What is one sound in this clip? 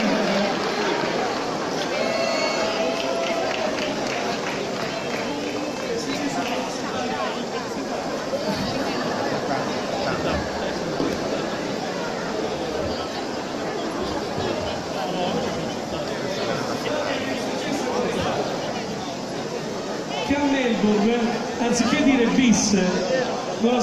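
A group of singers sings through loudspeakers.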